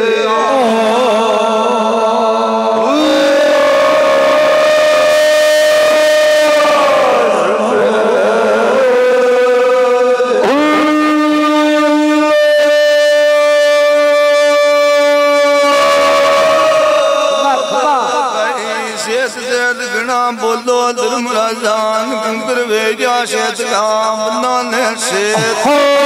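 Several reed pipes play a loud, wavering melody together.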